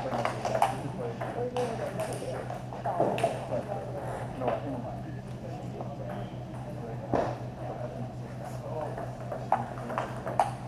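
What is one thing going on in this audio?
A table tennis ball clicks back and forth off paddles and the table in an echoing hall.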